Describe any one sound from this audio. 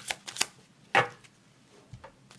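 A card is laid down with a soft tap.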